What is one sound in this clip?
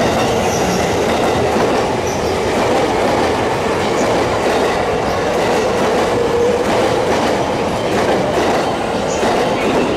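Wheels clatter over rail joints.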